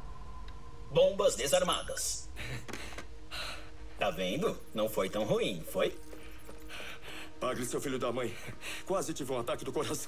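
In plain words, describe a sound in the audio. A man speaks with relief, close by.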